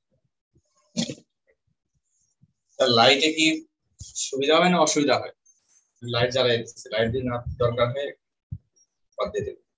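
A man lectures through an online call.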